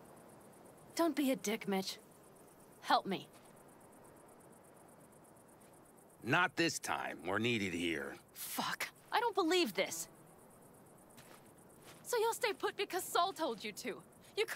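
A young woman speaks angrily, close by.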